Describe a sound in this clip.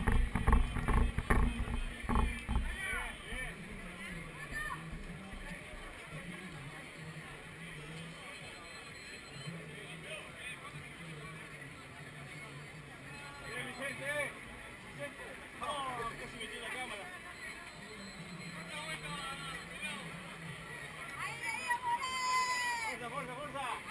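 A crowd of spectators chatters and cheers outdoors.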